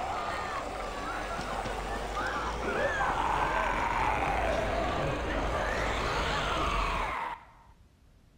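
Zombies groan and moan close by.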